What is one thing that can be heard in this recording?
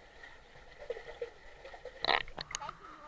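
Water bubbles and gurgles underwater.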